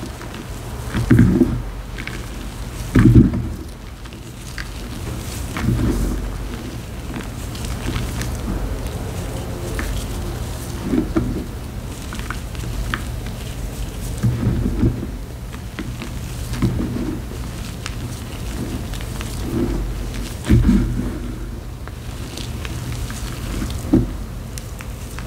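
Crumbled chalk lands on a pile with soft, dull thuds.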